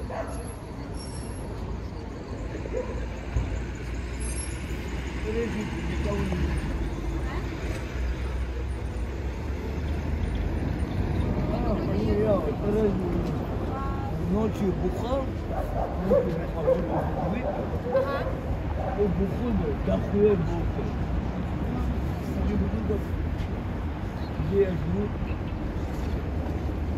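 Cars drive past on the street.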